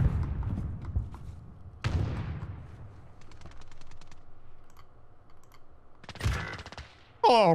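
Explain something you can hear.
A rifle fires loud booming shots that echo away.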